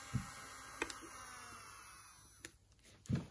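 A small electric nail drill whirs and winds down.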